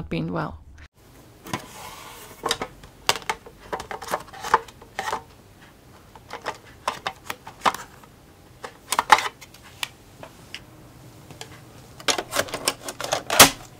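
Plastic floppy disks clack and tap against each other as they are flipped through.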